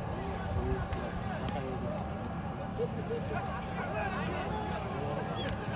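A large crowd of men shouts and calls out outdoors.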